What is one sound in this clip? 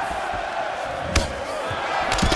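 A punch or kick lands with a thud.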